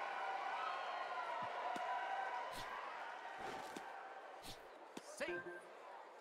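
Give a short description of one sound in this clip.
A crowd cheers in a large stadium.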